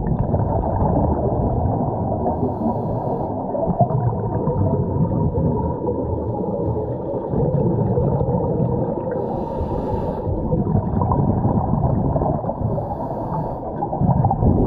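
Water rumbles and sloshes in a muffled, steady wash heard from underwater.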